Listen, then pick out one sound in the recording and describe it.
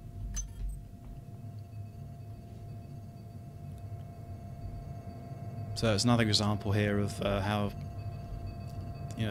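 Electronic consoles hum steadily.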